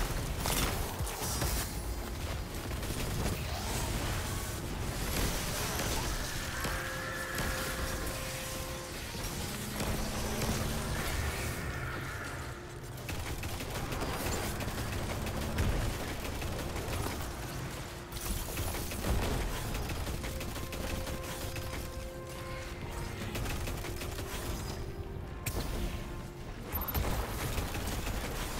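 Gunfire from a video game crackles and booms in rapid bursts.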